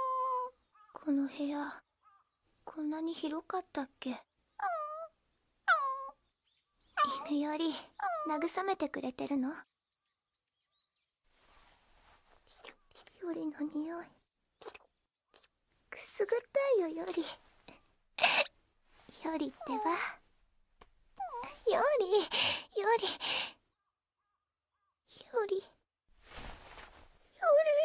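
A young woman speaks softly and sadly, close by.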